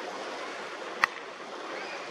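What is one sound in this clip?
A cricket bat strikes a ball with a sharp crack in the distance.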